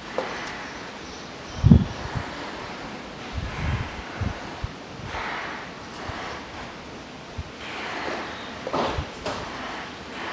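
Metal parts knock and scrape as a hand twists them.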